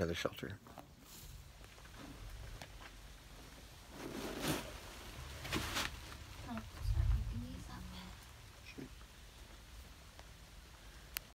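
Rain patters steadily outside a shelter.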